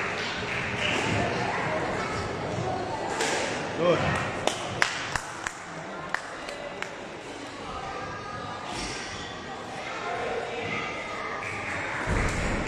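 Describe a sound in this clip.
A squash ball smacks against the walls with sharp echoing knocks in a large hall.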